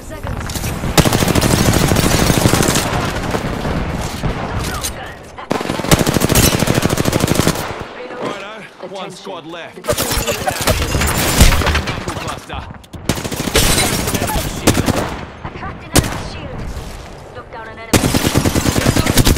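Automatic gunfire rattles in a video game.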